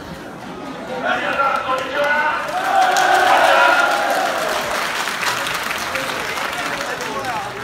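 A crowd of football supporters shouts and sings, some way off.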